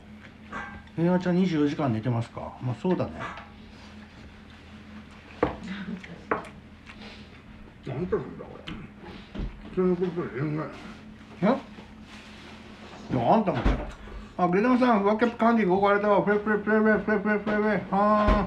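An elderly man talks nearby in a relaxed voice.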